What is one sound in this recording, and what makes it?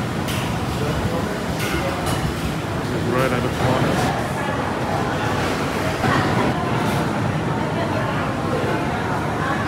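A crowd of people chatters in a large, open hall.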